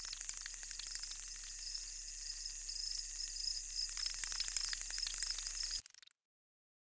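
A swarm of insects buzzes steadily and high.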